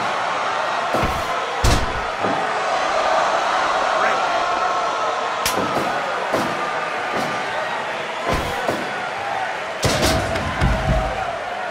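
Heavy thuds of bodies hitting a wrestling mat ring out now and then.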